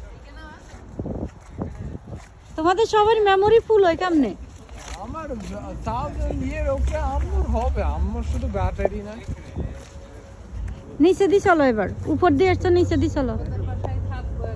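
Young men talk and call out loudly close by.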